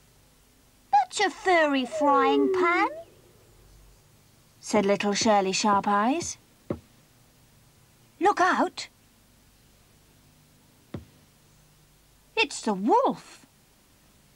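A young girl speaks with animation in short bursts.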